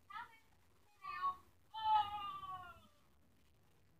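A young child calls out in a high, excited voice.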